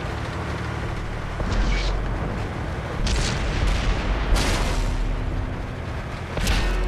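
Tank tracks clatter over rough ground.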